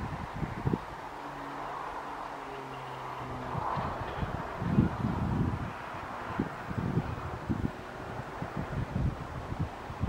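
A diesel locomotive engine hums in the distance.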